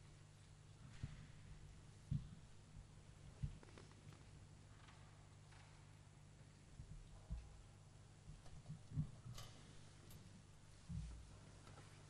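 Soft footsteps thud in a large echoing hall.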